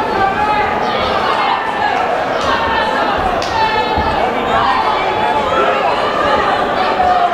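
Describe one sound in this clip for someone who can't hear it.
A crowd of men and women shouts and cheers loudly in a large echoing hall.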